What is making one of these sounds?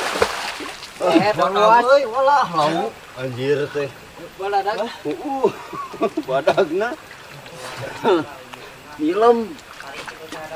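Young men talk and call out to each other nearby.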